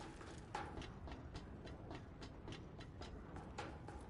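Boots clank up metal stairs.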